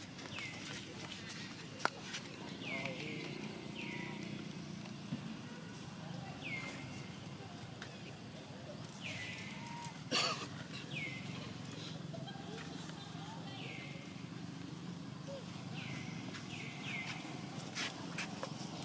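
A leaf rustles as a baby monkey handles it.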